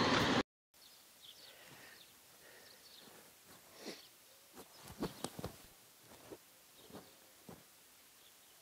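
Swallows twitter in short, high chirps.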